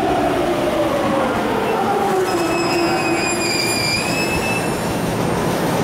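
An electric train pulls away with a rising motor whine.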